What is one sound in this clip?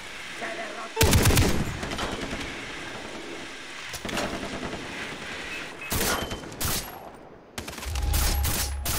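A rifle fires loud shots outdoors.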